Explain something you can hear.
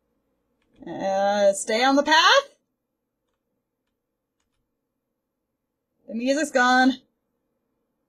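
A young woman talks with animation through a headset microphone.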